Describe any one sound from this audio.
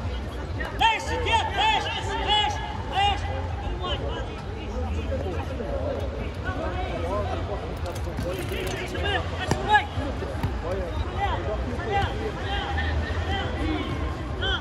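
Shoes squeak sharply on the hard court.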